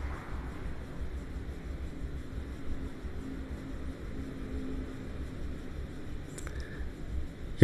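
A man commentates calmly through a microphone.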